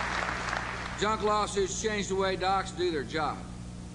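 A middle-aged man speaks firmly into a microphone over loudspeakers.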